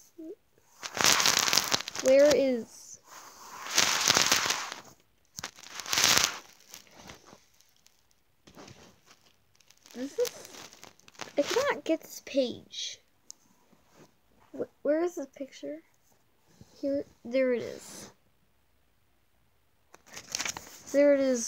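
Comic book pages rustle and flap as they turn.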